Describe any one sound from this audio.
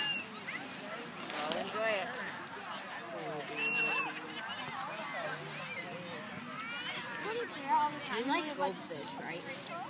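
A crowd of young people talks and shouts all at once outdoors, close by.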